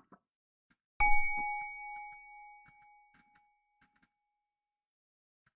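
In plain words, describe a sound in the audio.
A bright chime rings once and slowly fades.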